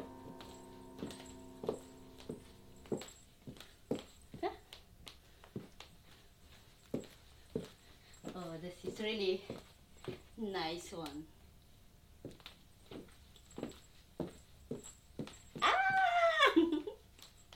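High heels click on a wooden floor.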